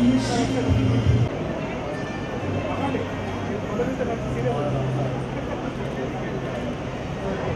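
A crowd of adults chatters in the background.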